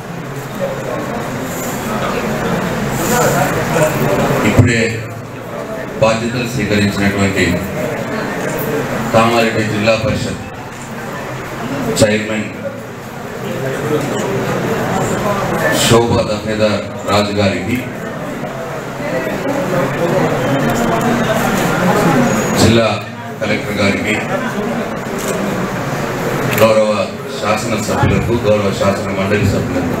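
A middle-aged man speaks steadily into a microphone, heard through loudspeakers in a room.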